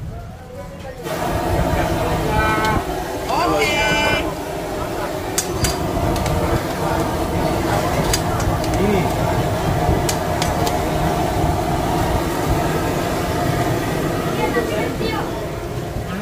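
A busy crowd murmurs steadily in the background.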